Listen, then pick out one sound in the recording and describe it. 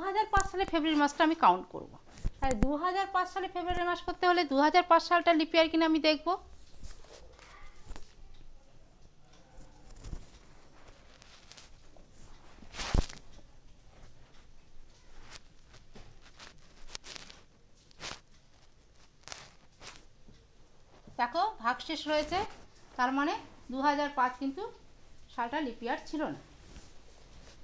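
A woman speaks clearly and steadily, close by, as if teaching.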